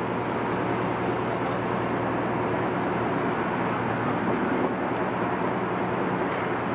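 A bus engine idles with a steady low rumble close by.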